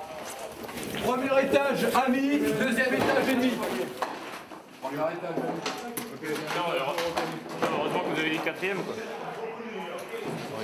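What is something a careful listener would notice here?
A man speaks in a low, tense voice nearby.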